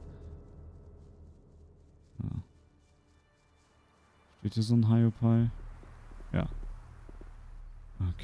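Footsteps crunch softly on grass and stone.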